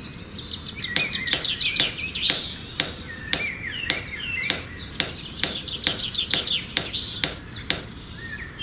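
A small hammer taps sharply and regularly on a stick.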